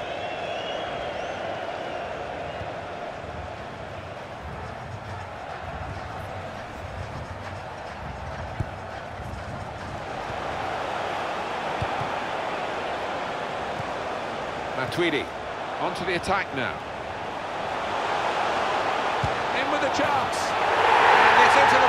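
A stadium crowd roars steadily, swelling louder near the end.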